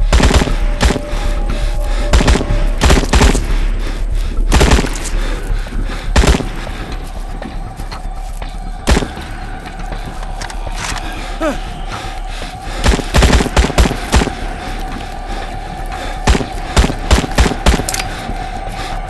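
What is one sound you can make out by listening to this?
A rifle fires loud single shots and short bursts.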